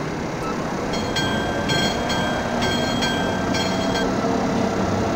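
A crossing bell rings rapidly as the train passes.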